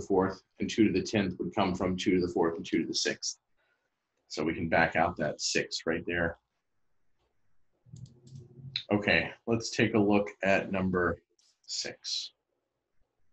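A man explains calmly over an online call.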